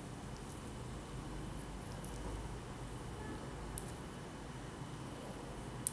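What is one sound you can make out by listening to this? A cable scrapes lightly across a hard floor.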